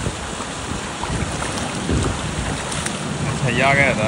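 Water splashes as a man climbs out of a pool.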